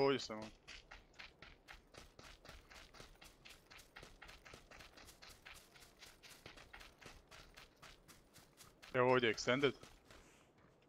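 Quick footsteps run over dry ground.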